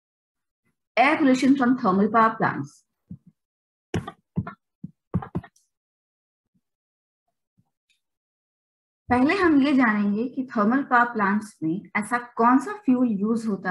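A young woman speaks calmly through a microphone on an online call.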